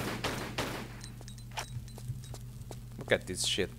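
Quick footsteps tap on a hard stone floor.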